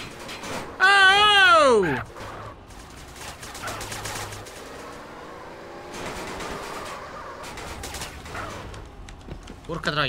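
A car engine revs and tyres screech.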